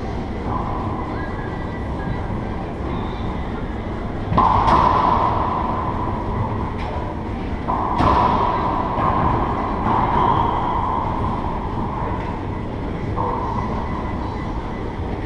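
Sneakers squeak and shuffle on a wooden floor.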